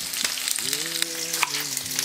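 A knife chops green onions on a wooden cutting board.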